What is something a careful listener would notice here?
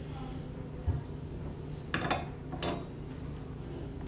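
A small metal bar is set down on wood.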